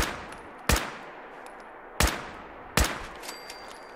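Gunshots crack sharply, a few single shots.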